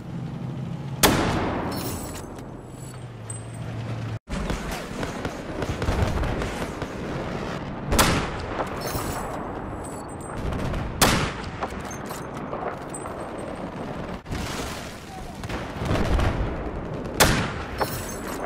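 A sniper rifle fires single loud shots that echo away.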